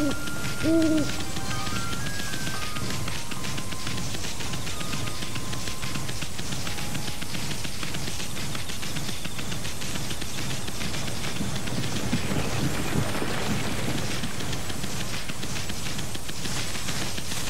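Quick footsteps patter over stone and grass.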